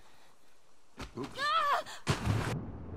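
A young girl screams while falling.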